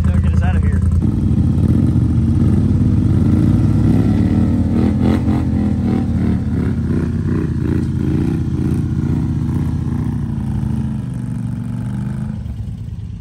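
A second engine revs and strains as a quad bike is pulled out of mud.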